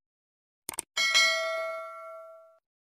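A small bell rings once and slowly fades.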